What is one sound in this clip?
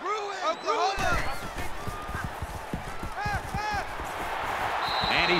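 Padded football players thud and clash together in a tackle.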